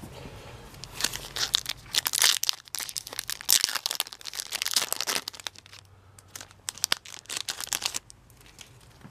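A foil booster pack crinkles and tears open.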